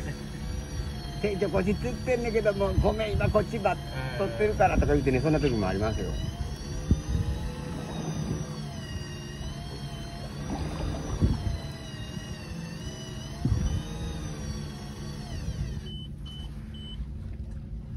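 A fishing reel winds with a clicking whir.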